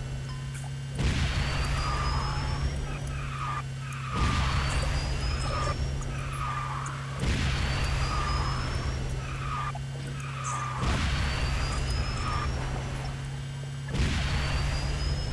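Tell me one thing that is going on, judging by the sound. A loud rushing whoosh bursts out every few seconds.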